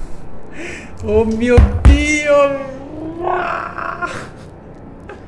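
A young man laughs and exclaims loudly into a microphone.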